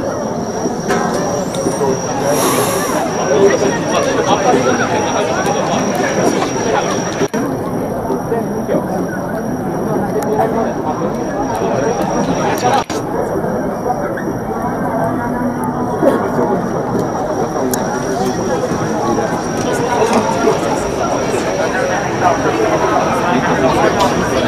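A large crowd chatters and murmurs all around.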